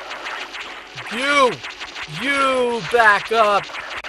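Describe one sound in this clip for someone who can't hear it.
Electronic tones warble up and down in arched chirps.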